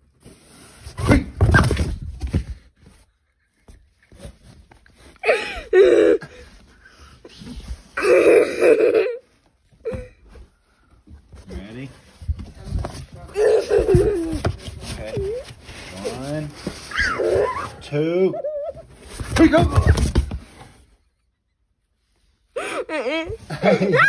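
A young boy giggles and laughs close by.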